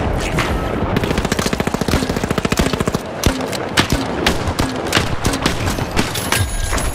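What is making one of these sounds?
A heavy rotary gun fires in rapid bursts, with loud sharp shots.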